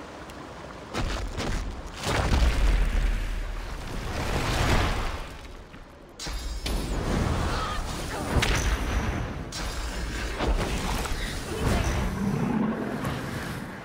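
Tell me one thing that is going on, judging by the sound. Fiery spells burst with a loud whoosh.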